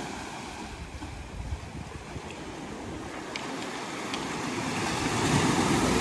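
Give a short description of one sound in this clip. Wind blows outdoors in low gusts.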